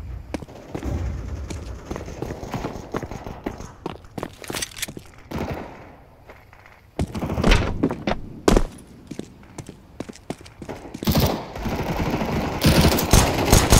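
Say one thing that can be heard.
Footsteps tap on stone pavement.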